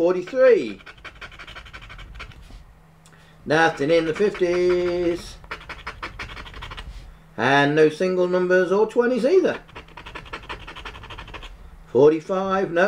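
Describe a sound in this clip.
A scraper rapidly scratches a card with a dry rasping sound.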